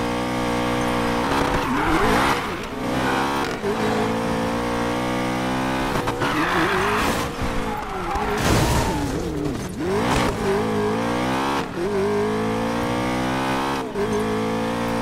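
A car engine roars at high revs, rising and dropping in pitch as it shifts gears.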